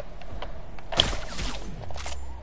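A rifle shot cracks sharply.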